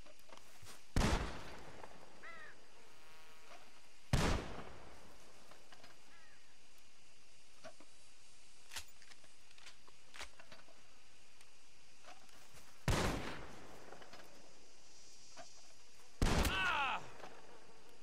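A rifle fires loud single shots that ring out and echo.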